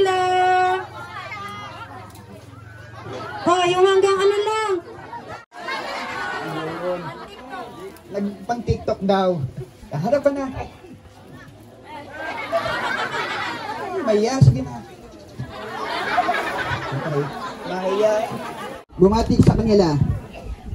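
A man speaks with animation to a crowd.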